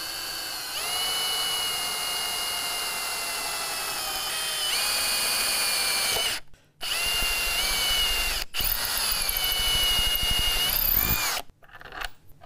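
An electric drill whines as it bores into wood.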